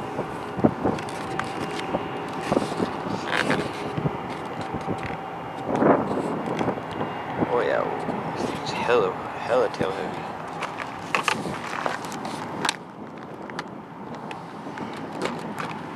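A plastic model plane knocks and rattles as hands handle it.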